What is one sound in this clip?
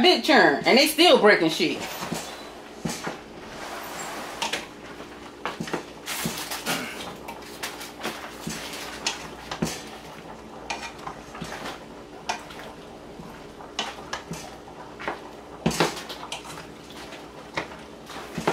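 Pieces of vegetable rustle and tap softly as a hand turns them over in a pot.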